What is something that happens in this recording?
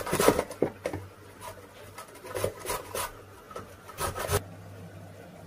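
A hand grater scrapes rapidly as a carrot is grated.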